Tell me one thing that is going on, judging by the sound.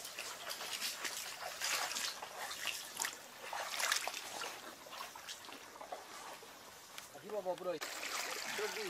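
Footsteps splash through shallow muddy water.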